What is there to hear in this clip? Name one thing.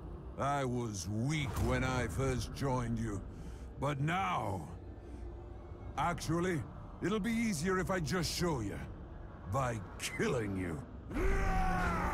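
A deep-voiced man growls and speaks menacingly, close up.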